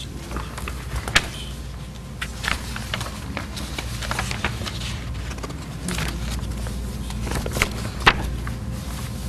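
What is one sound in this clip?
Papers rustle and crinkle close by.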